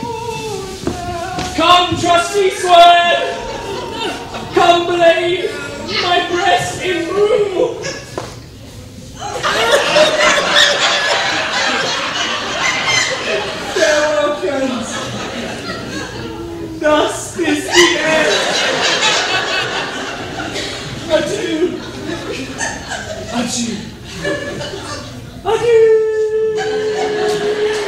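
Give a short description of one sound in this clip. A man sings loudly and dramatically.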